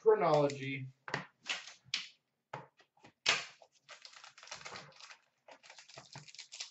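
Small card packs rustle and tap as hands handle them.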